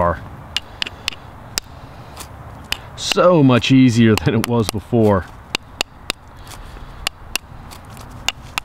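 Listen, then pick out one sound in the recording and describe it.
A stone scrapes across stiff leather in short, rasping strokes.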